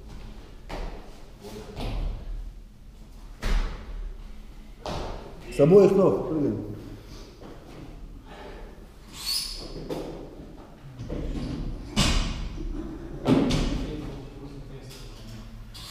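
A loaded barbell thuds onto a floor.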